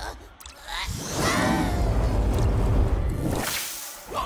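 A creature breathes out a loud roaring burst of fire.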